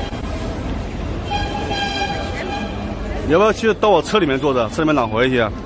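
A busy street crowd murmurs in the background.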